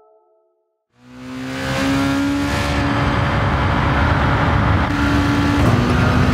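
A racing car engine revs up again after a short silence.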